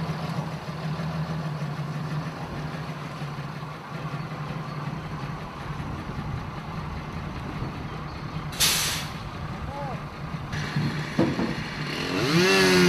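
A truck engine idles steadily nearby, outdoors.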